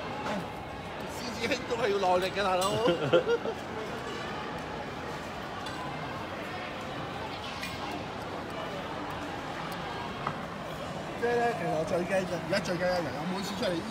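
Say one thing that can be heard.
A crowd murmurs and walks along a street outdoors.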